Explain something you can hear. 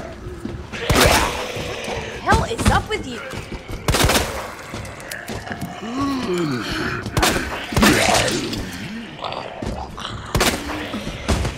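Pistol shots ring out loudly, one at a time.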